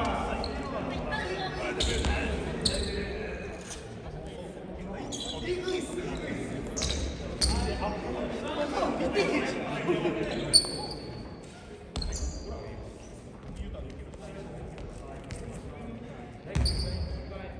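Basketball shoes squeak on a wooden court in an echoing gym.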